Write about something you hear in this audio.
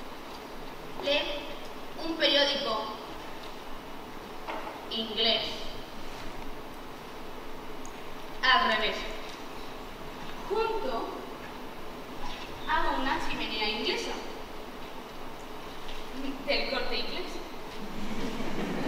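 A young woman speaks clearly in an echoing hall, in short bursts with pauses.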